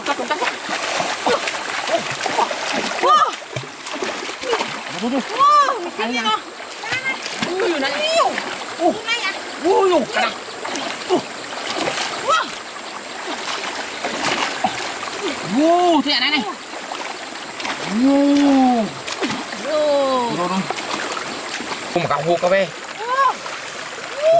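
A shallow stream flows and gurgles over stones.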